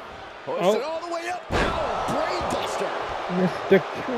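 A body slams onto a ring mat with a heavy thud.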